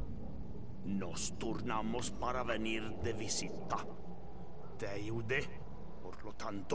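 A man speaks in a low, tense voice close by.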